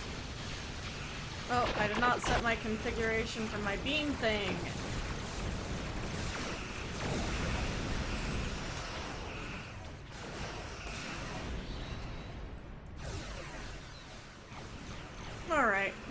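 Laser weapons and explosions of a game blast and rumble.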